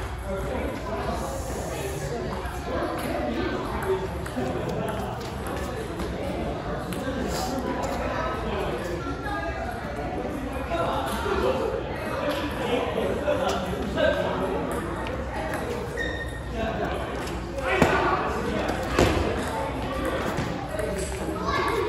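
A table tennis ball clicks against paddles and the table in a quick rally.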